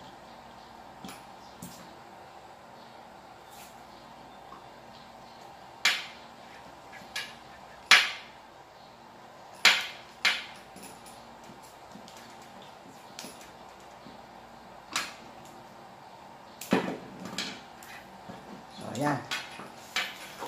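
Wires and small plastic parts click and rattle as hands handle them.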